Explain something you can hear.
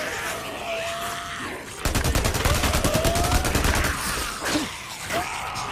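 A horde of creatures snarls and screeches as it charges.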